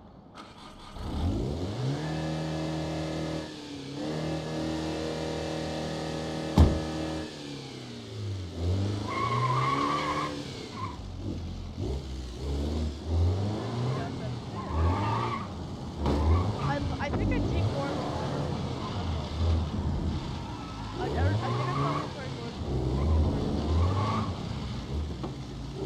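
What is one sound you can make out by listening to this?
A car engine starts, idles, then revs up and down as the car drives off.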